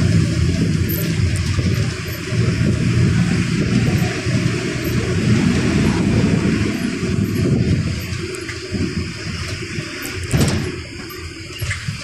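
A bus interior rattles and creaks as it moves.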